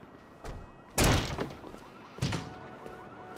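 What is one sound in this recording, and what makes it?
A door bangs open with a loud thud.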